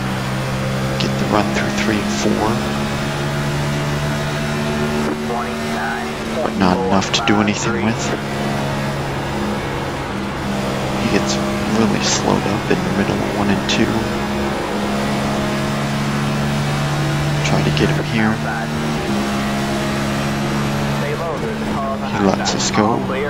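Other race cars roar past close by.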